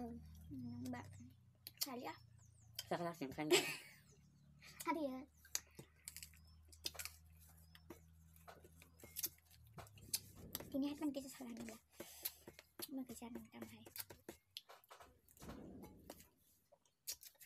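Crunchy food is bitten and chewed.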